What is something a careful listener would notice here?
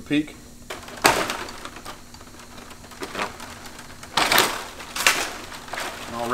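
Dry palm leaves rustle and crackle as a man handles them.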